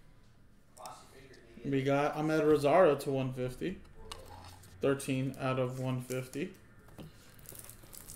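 Cards rustle and tap as they are handled.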